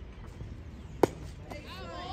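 A metal bat cracks sharply against a ball.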